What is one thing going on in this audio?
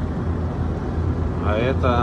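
A van drives past nearby.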